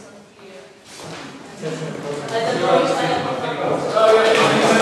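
Several people chatter nearby.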